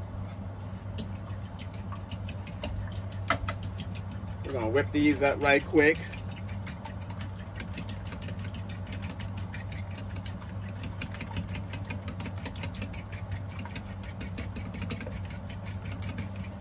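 A whisk beats rapidly against a bowl.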